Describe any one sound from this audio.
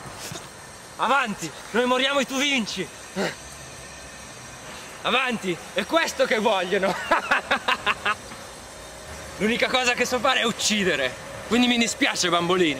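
A young man speaks loudly and with strain, close by.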